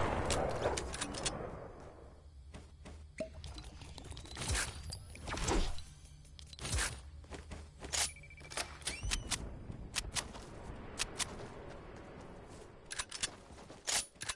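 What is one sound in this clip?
Footsteps tap quickly on hard ground in a video game.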